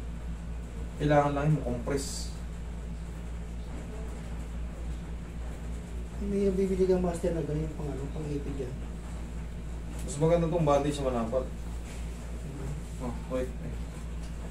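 A man speaks calmly in short phrases nearby.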